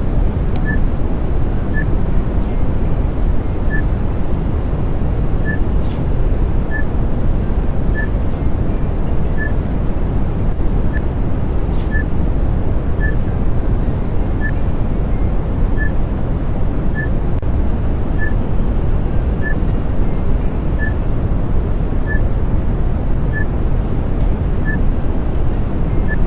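An elevator hums with a deep, steady rumble as it moves.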